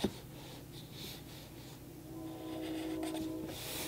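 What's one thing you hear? A marker pen squeaks and scratches softly on paper.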